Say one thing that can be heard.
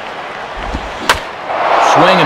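A bat strikes a ball with a sharp crack.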